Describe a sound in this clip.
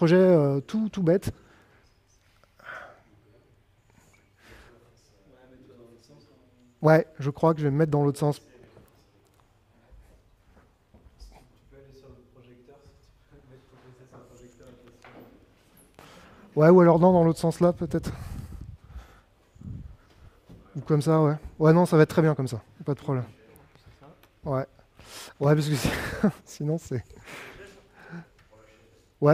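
A man speaks calmly through a microphone in a large hall, pausing often.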